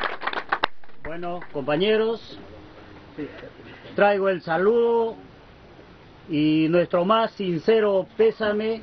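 A group of men and women sing a slow song together nearby.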